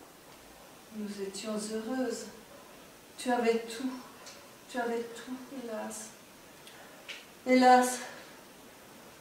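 An elderly woman speaks softly and with feeling.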